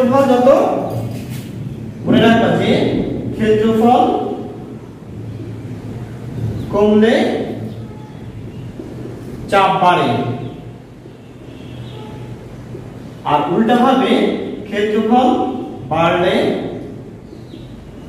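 A man speaks calmly and clearly, close by, in short phrases with pauses.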